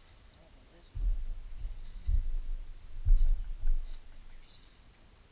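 A wooden hive lid scrapes and knocks as it is lifted off.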